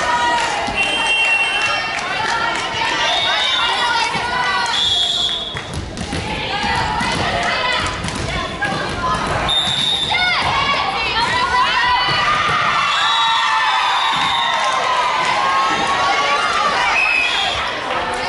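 Shoes squeak sharply on a hard court floor.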